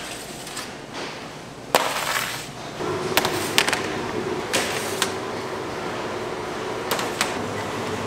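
Metal trays clatter and clank.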